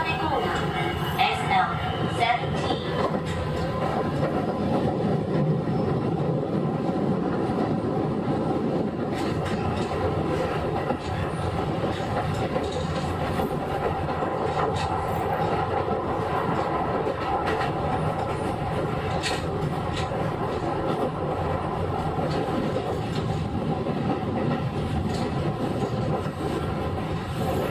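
An electric train hums steadily while standing on the tracks.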